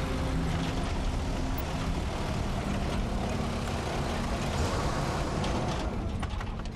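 An open vehicle's engine rumbles steadily as it drives over rough ground.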